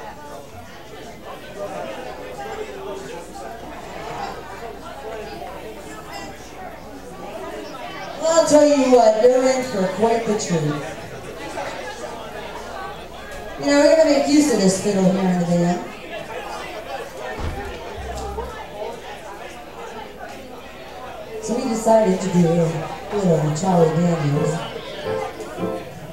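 A band plays in an echoing room.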